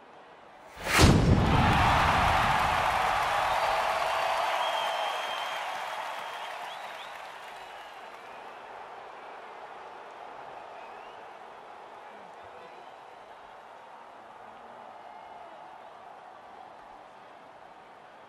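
A large stadium crowd cheers and roars, then slowly quietens.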